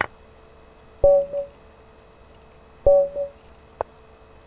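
A short two-note chime sounds as a game ends and a new one begins.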